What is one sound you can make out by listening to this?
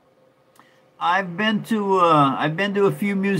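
An elderly man speaks with animation close to the microphone.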